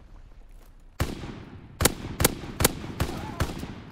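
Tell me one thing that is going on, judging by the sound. A machine gun fires in short, loud bursts.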